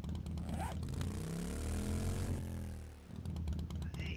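A small motorbike engine revs up and then winds down.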